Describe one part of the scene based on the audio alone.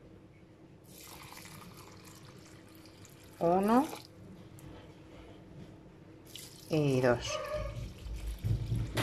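Water pours and trickles into a bowl.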